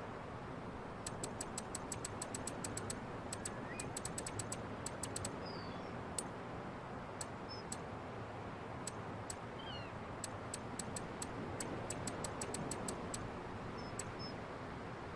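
Soft menu clicks tick rapidly, one after another.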